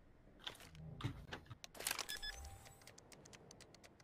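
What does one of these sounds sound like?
A bomb keypad beeps as buttons are pressed.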